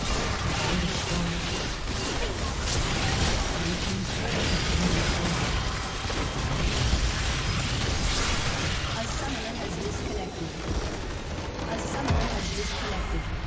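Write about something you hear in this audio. Game spells and blows crackle and boom in a fight.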